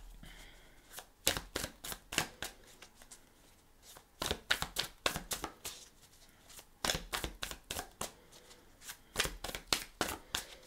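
Playing cards are shuffled by hand, with quick crisp snaps.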